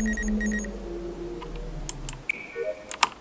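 A scanner hums with a falling tone and then stops.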